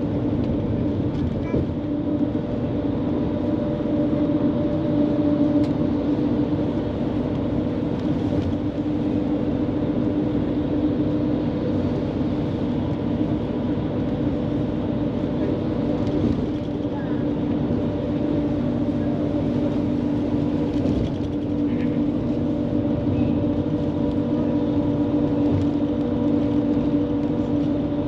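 A train hums and rumbles steadily as it rides along an elevated track.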